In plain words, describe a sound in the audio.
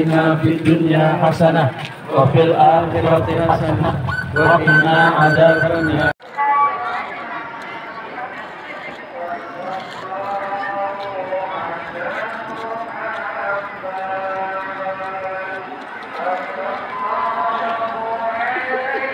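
A crowd of men and women chants together in unison outdoors.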